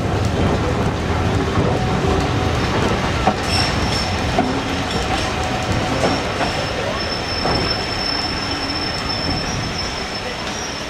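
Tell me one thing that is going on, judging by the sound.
Train wheels rumble and clatter steadily over the rails.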